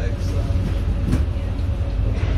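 A lorry drives past in the opposite direction.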